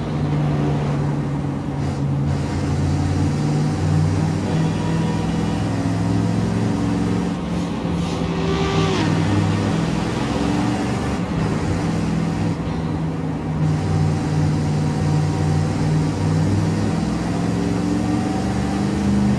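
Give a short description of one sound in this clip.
A truck engine hums steadily and rises in pitch as it speeds up.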